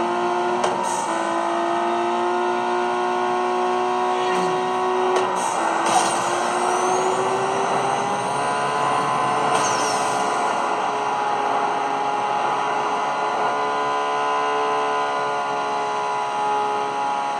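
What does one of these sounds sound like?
A game's car engine roars steadily, shifting pitch as it changes gear.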